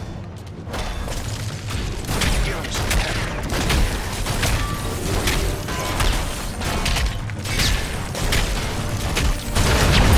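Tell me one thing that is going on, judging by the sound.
Gunfire and laser blasts crackle in quick bursts.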